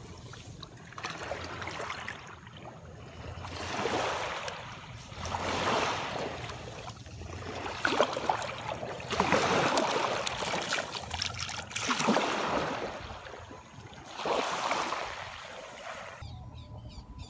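Small waves wash over sand and draw back, again and again.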